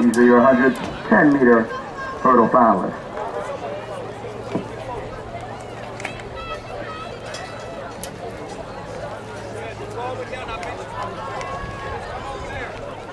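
Spectators chatter quietly in the background outdoors.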